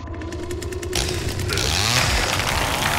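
A chainsaw revs loudly and cuts through wood.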